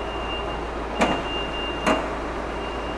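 A car bonnet latch clicks open sharply.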